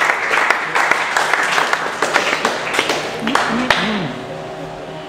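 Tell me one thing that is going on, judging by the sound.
A crowd claps in a large echoing hall.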